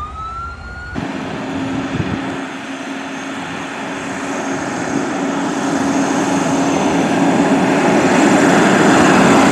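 A fire engine's motor rumbles as it rolls closer.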